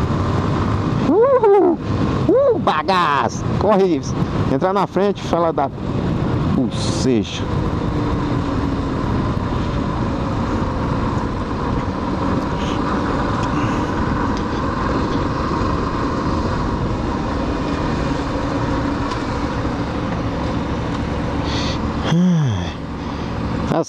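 A motorcycle engine revs up and down between gear changes.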